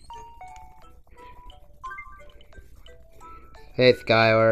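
A handheld game console plays short electronic beeps and jingles.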